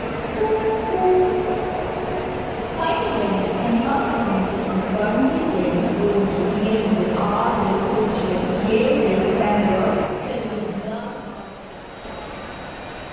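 A large crowd chatters and murmurs in a big echoing hall.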